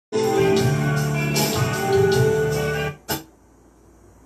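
Steel pan notes ring out in a quick melody, then stop.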